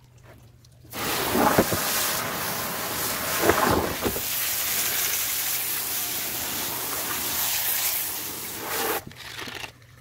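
Water sprays from a hose into a plastic tub.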